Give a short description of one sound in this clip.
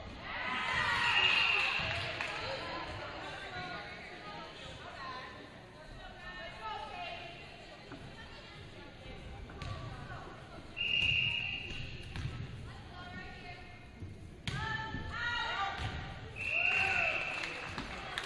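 A referee's whistle blows short blasts in an echoing gym.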